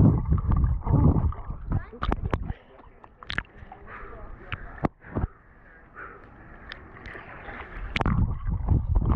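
Water splashes and bubbles loudly.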